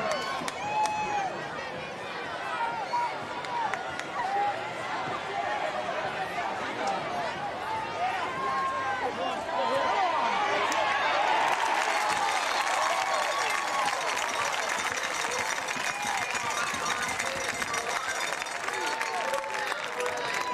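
A large outdoor crowd chatters and cheers from the stands, swelling into a loud roar as a play unfolds.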